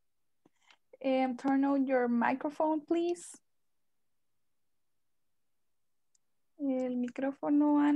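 A woman speaks calmly over an online call, heard through a microphone.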